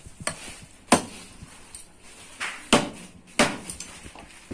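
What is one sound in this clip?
A cleaver chops hard through meat and bone.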